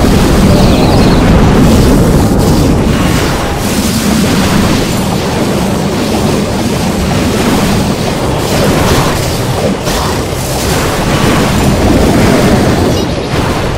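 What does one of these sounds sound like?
Explosions and fiery blasts crackle in a noisy battle.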